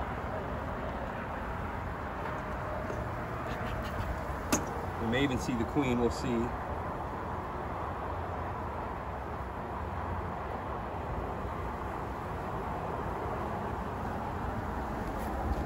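Honeybees buzz around an open hive.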